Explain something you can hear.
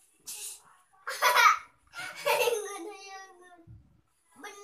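A young child laughs and squeals loudly close by.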